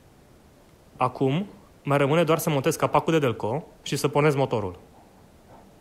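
A man speaks loudly up close.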